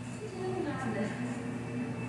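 A broom sweeps across a tiled floor.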